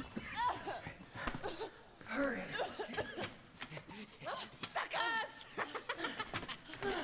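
Men grunt and shout as they brawl nearby.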